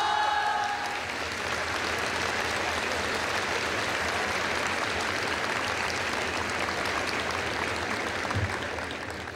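An audience applauds steadily.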